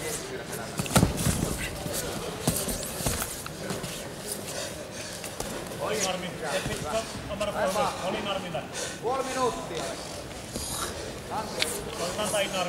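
Punches thud against a fighter on the mat.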